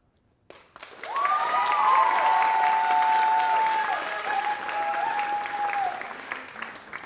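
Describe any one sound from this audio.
Whistles shrill over applause.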